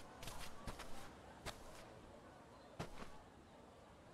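Footsteps tap softly on the ground.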